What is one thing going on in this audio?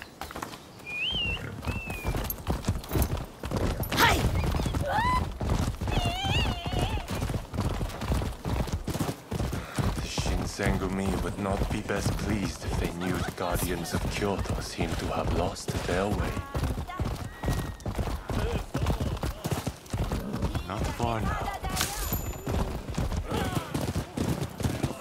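Horse hooves clatter rapidly on stone at a gallop.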